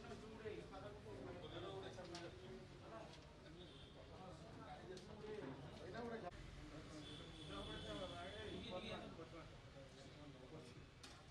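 A man speaks steadily to a microphone nearby.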